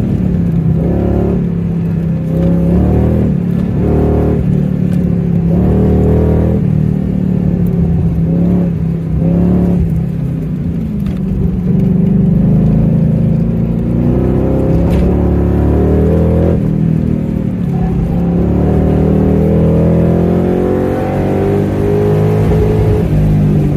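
A car engine roars close up, revving up and down.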